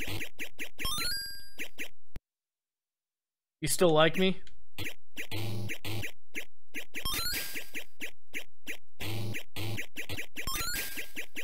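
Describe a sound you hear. An arcade game plays short rising jingles.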